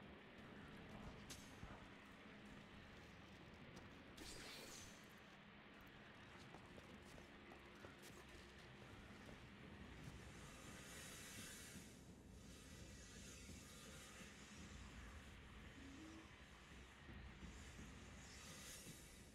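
Footsteps clang on metal grating.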